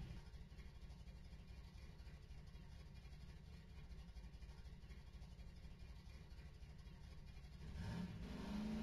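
A quad bike engine rumbles low and steady.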